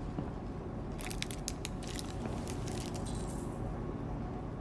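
A wrapper crinkles in someone's hands.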